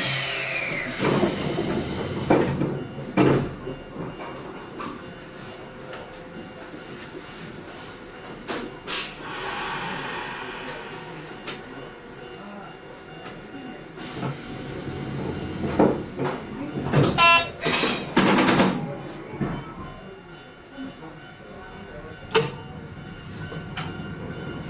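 The wheels of a train knock over rail joints.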